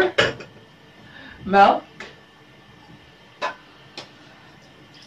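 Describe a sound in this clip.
A plastic blender jug is set down on a table with a light knock.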